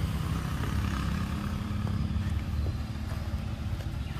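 A monkey chews and gnaws on a piece of fruit.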